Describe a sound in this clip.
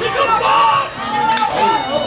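A man shouts instructions.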